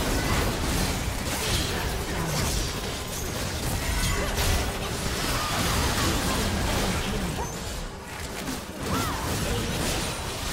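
Game spell effects crackle and burst in a busy fight.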